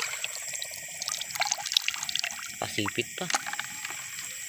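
Small creatures scrabble and knock inside a plastic bucket.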